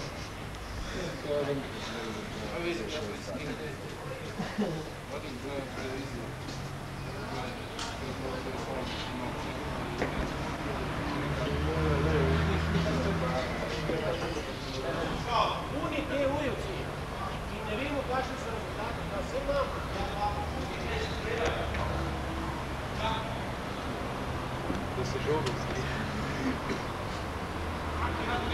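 Young men talk nearby.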